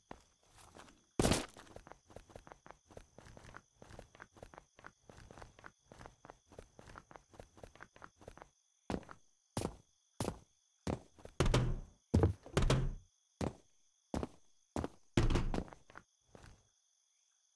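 Footsteps thud steadily on the ground at a quick walking pace.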